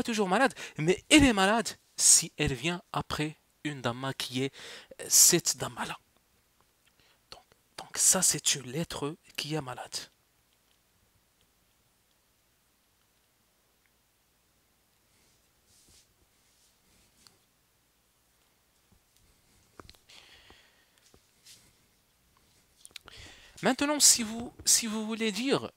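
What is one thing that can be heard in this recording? A young man speaks calmly into a headset microphone, with pauses.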